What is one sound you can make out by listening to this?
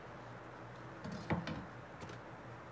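A knife clatters down onto a cutting board.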